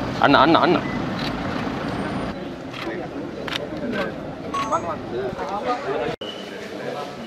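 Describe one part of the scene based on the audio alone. Men talk and greet one another in a crowd outdoors.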